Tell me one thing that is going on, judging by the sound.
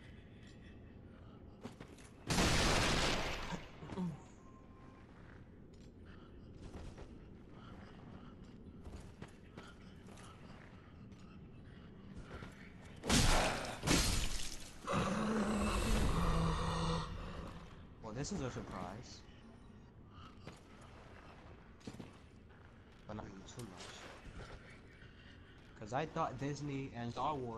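Armoured footsteps clank on a stone floor.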